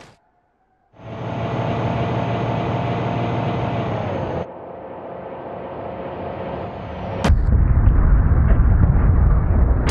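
A bus engine drones steadily as the bus drives along.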